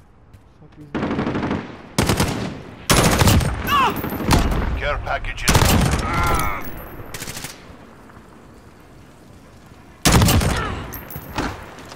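A rifle fires loud, rapid bursts.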